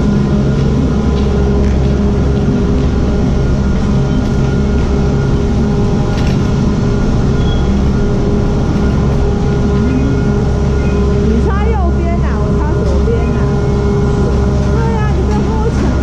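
Gondola cabins clank and knock as they pass through the station.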